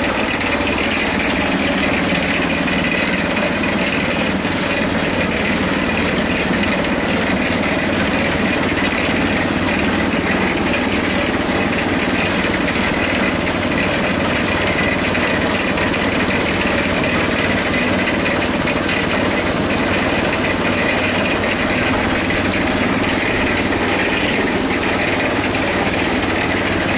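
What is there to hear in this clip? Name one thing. A cement mixer drum rumbles and churns steadily.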